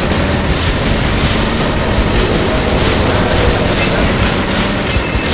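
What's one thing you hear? A truck engine roars steadily.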